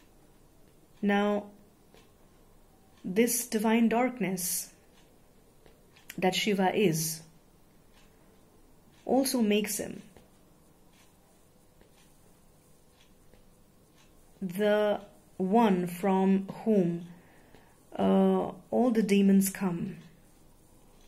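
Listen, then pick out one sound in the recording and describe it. A young woman speaks close to a microphone in short, calm phrases with long pauses.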